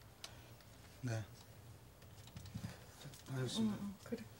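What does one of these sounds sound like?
A young man speaks briefly and quietly nearby.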